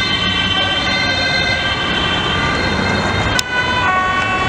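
Car traffic rumbles past.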